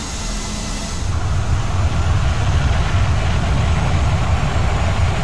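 Jet engines roar louder as the aircraft slows on the runway.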